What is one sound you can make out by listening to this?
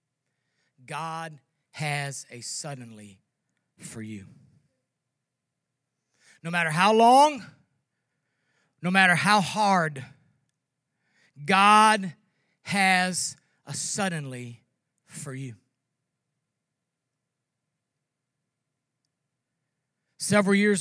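An older man speaks slowly and with feeling through a microphone, with pauses between phrases.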